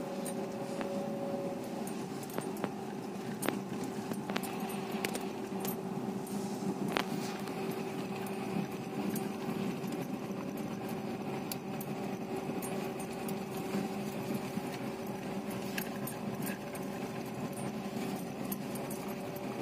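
A horse's hooves clop on hard ground.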